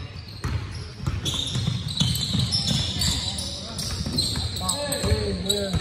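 Many young players shout and call out across an echoing gym.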